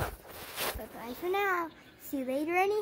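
A young girl speaks with animation, close up.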